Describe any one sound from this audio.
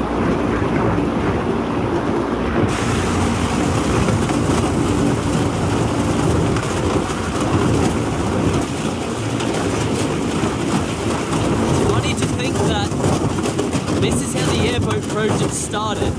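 An airboat's propeller engine roars loudly and steadily.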